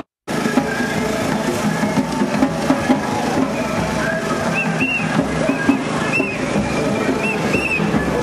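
A large crowd of men and women talks and shouts outdoors.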